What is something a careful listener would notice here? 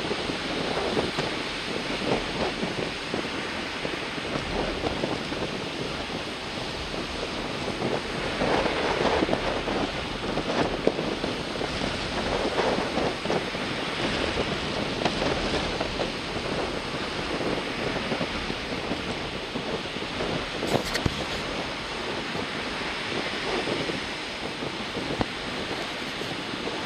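Waves break and wash onto the shore.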